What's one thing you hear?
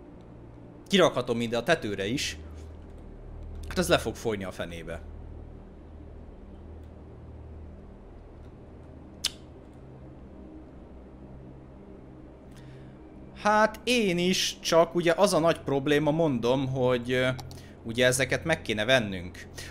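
A man speaks casually into a close microphone, in bursts with pauses.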